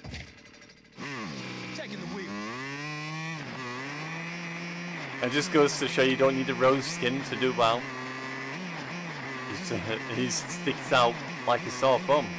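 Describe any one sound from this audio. A motorcycle engine starts and revs, then drones steadily.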